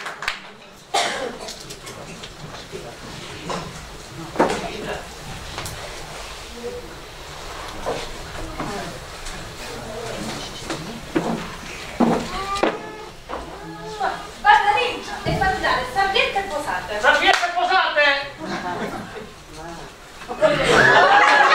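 A man speaks with animation on a stage, heard from the audience in an echoing hall.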